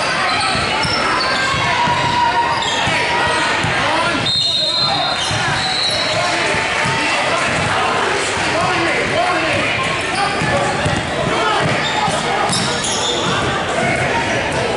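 Spectators and players talk and shout, echoing in a large hall.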